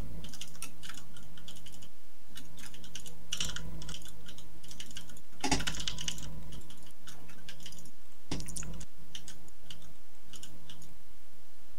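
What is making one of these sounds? Mechanical keyboard keys clack rapidly and unevenly.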